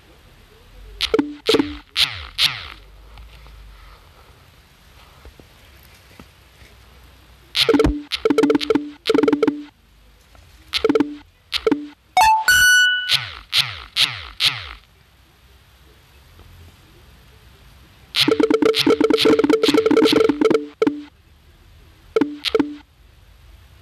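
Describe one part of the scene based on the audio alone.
Bright, chiming game sounds ring out in quick bursts.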